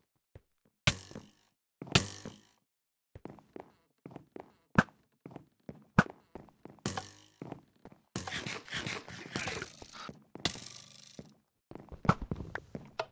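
A sword strikes with short sharp hits again and again.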